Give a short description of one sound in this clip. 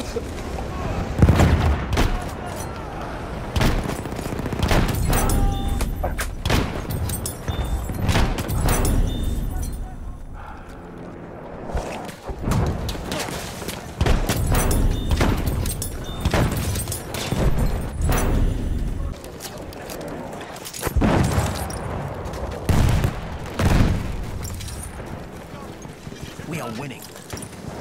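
Gunshots bang loudly, one after another.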